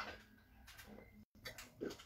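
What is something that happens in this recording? A woman gulps water from a glass.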